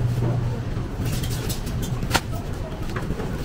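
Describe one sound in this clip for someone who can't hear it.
A plastic bag rustles up close.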